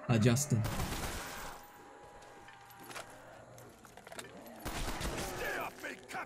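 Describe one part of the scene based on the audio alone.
A shotgun fires loudly several times.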